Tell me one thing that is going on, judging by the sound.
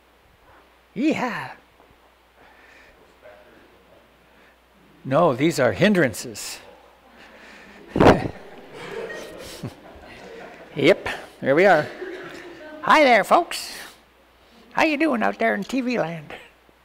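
An elderly man speaks with animation in a high, playful voice close to a microphone.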